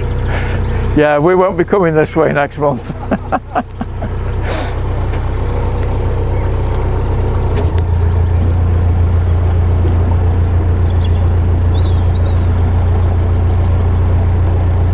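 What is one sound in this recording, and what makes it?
A boat engine hums steadily and low.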